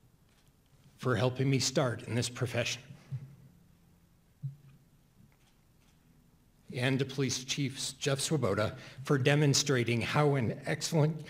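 A man speaks slowly through a microphone, with long pauses.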